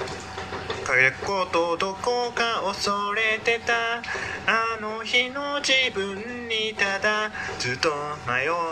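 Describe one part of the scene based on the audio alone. A man sings close by.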